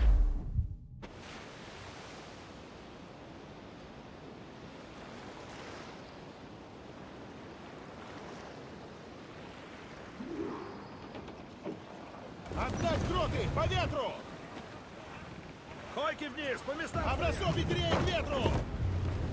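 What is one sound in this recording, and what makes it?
Wind blows through a ship's sails and rigging.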